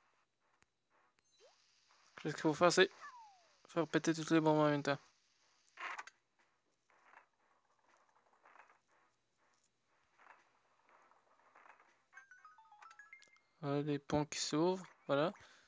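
Short electronic game sound effects chime and blip.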